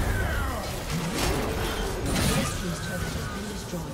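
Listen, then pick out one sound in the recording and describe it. Game spell and combat effects crackle and burst.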